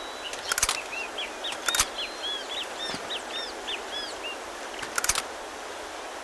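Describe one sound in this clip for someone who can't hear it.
A handgun clicks and rattles as it is picked up.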